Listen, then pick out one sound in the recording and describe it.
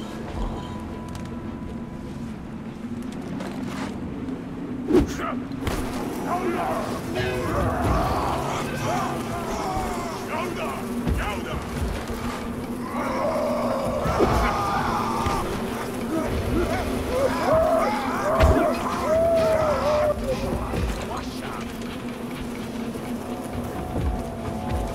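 Dry brush rustles and crackles as someone pushes through it.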